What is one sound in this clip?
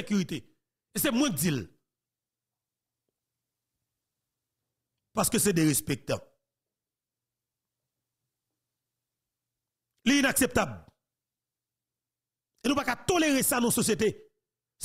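A man speaks close into a microphone in short, deliberate bursts with pauses between.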